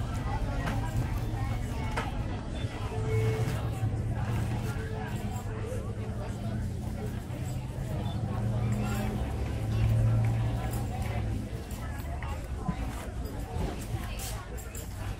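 Outdoors, a crowd murmurs.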